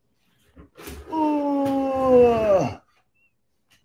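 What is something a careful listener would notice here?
A man groans in a long, falling drawn-out voice.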